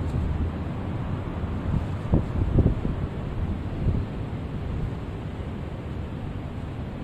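Electric fans whir steadily in a large echoing hall.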